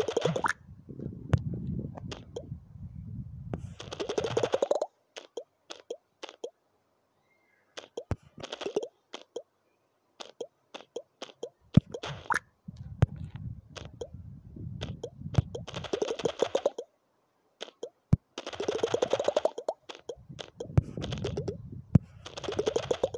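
A game ball bounces with quick, clicking taps.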